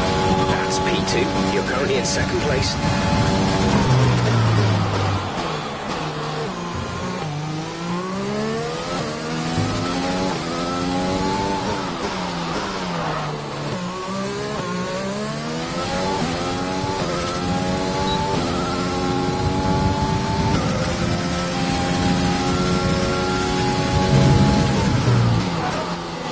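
A racing car engine roars loudly, its pitch rising and falling again and again.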